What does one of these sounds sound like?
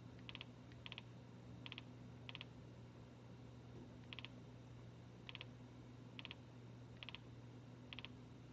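Short electronic menu clicks tick in quick little bursts.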